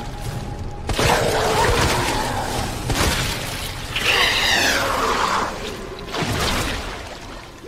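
A shotgun fires several times in a game.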